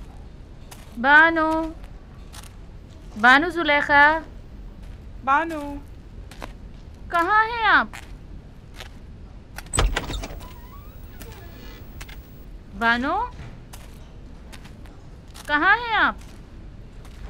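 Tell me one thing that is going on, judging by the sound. A woman calls out in long, wavering, rising and falling cries in an echoing hall.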